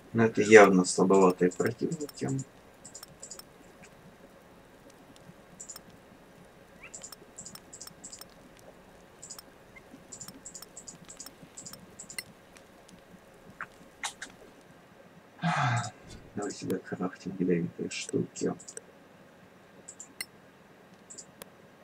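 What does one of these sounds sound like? Soft interface clicks tick now and then as game menus open and items move.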